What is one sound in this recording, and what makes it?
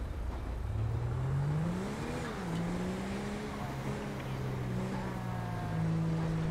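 Tyres roll over asphalt.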